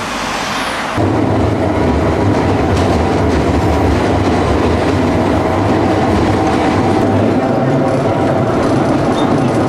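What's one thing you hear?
Tram wheels rumble and rattle loudly from inside a moving tram.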